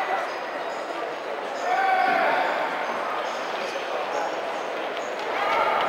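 Voices murmur and echo around a large indoor hall.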